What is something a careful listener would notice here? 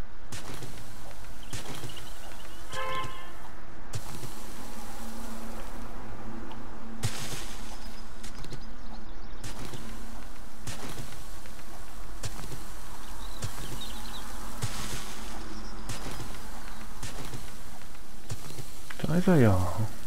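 A pickaxe strikes rock again and again with sharp knocks.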